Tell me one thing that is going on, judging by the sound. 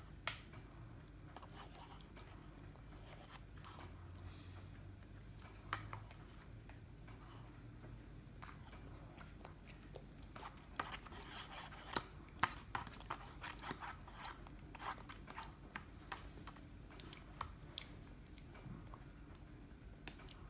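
A metal fork clinks and scrapes against a cup and a plate.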